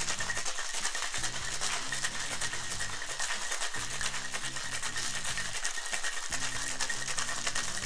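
Ice rattles rapidly inside a cocktail shaker.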